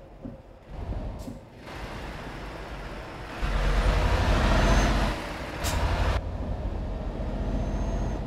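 Road and wind noise rushes loudly, swelling and falling.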